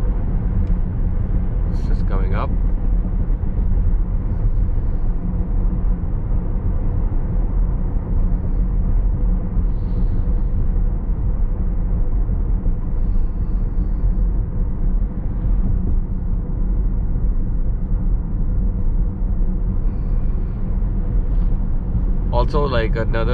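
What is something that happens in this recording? A car's road noise rumbles steadily from inside the cabin.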